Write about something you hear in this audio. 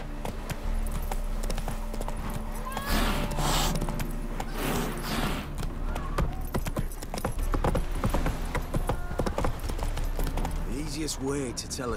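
A horse gallops with rapid hoofbeats.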